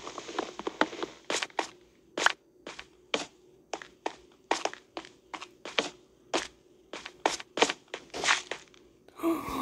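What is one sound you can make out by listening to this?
Footsteps tread quickly on stone.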